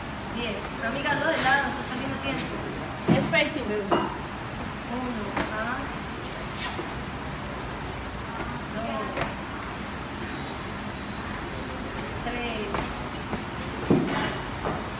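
A woman's feet thud on a rubber floor as she jumps.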